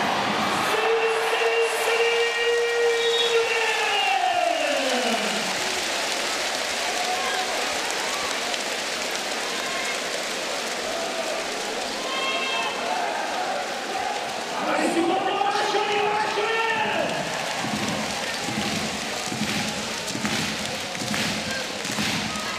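A large crowd cheers and claps in an echoing hall.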